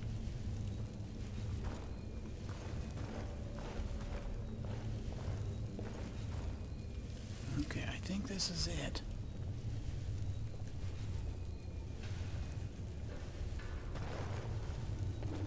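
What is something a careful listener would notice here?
Magic crackles and hums steadily.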